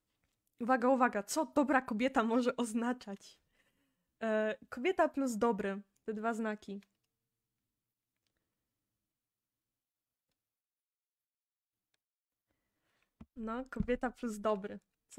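A young woman speaks through a microphone, clearly and with animation, pausing between phrases.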